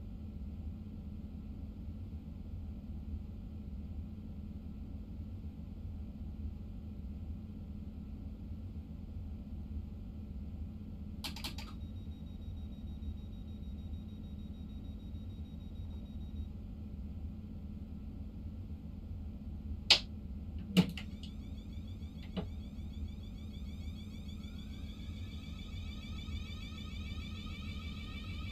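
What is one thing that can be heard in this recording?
A train engine hums steadily with a low rumble.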